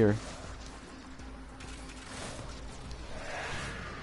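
Blades clash and whoosh in a video game fight.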